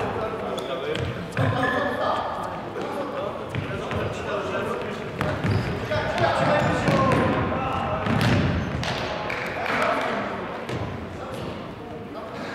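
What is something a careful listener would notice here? Shoes squeak and thud on a wooden floor in a large echoing hall.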